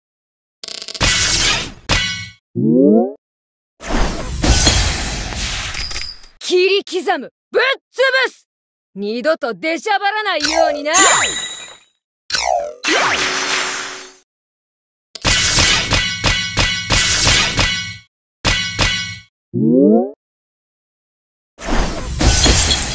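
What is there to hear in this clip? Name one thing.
Fiery magic blasts whoosh and crash in bursts.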